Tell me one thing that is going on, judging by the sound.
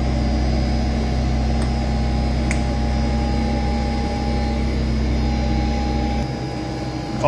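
A machine hums steadily and low.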